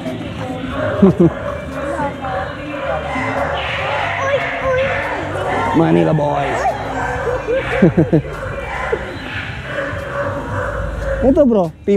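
A dog whines in short, rising and falling cries.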